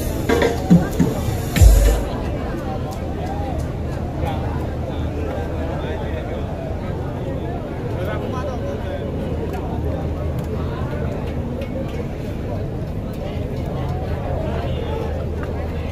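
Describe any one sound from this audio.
Loud music with a deep booming bass plays through large loudspeakers.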